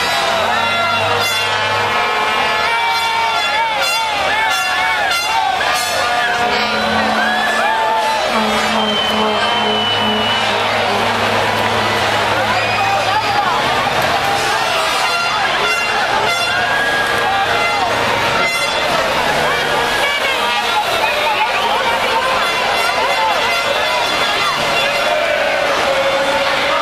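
Boat motors hum low and steadily.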